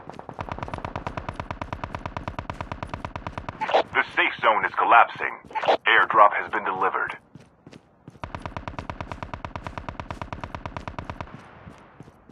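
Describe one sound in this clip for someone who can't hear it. Quick footsteps run over dry dirt.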